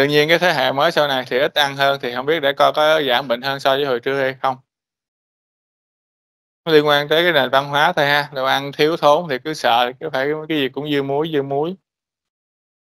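A man lectures calmly, heard through an online call.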